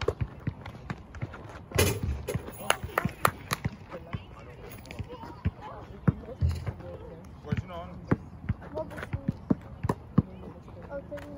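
A basketball bounces on hard ground outdoors.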